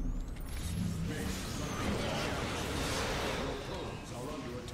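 Blasts roar and crackle loudly.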